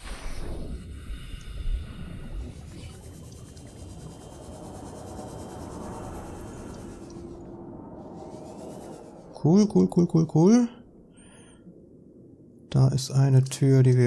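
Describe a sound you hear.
A small submarine's motor hums as it glides underwater.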